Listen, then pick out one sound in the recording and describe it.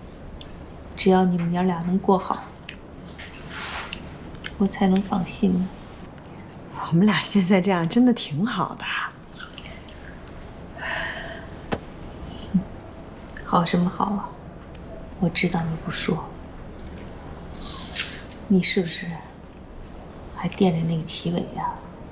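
An elderly woman speaks softly and calmly nearby.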